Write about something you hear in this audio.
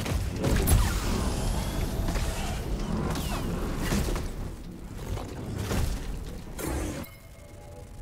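A lightsaber hums and clashes loudly.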